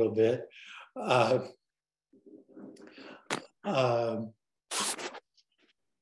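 An older man talks calmly over an online call.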